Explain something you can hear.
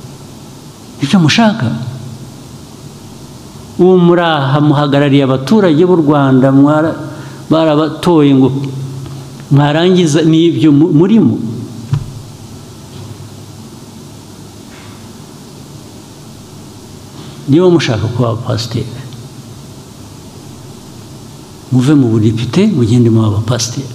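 A man speaks calmly into a microphone, in bursts with pauses, in a large echoing hall.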